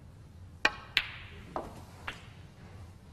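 Snooker balls knock together with sharp clicks.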